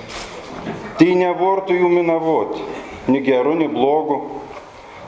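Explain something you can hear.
A middle-aged man reads out calmly through a microphone.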